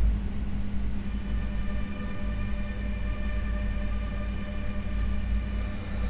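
A phone plays a soft startup chime.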